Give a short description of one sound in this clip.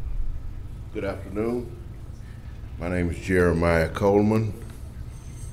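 An elderly man speaks calmly into a microphone in a large room.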